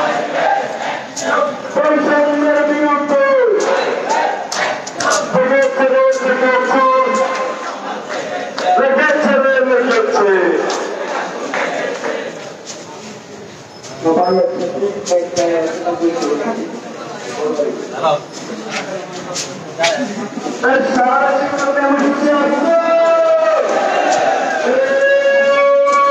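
A group of young men chant loudly in unison nearby.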